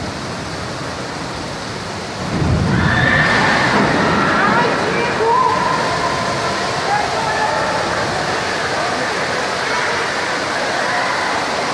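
Water pours and splashes down from a leaking ceiling.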